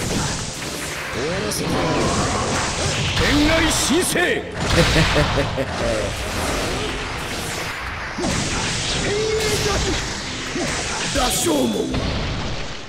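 Game fight sounds crash and whoosh with booming blasts.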